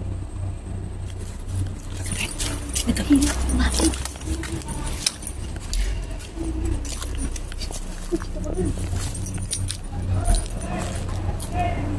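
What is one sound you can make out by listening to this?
Footsteps crunch on dry leaves and rustle through plants.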